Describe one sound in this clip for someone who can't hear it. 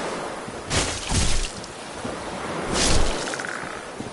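A sword swings through the air with heavy whooshes.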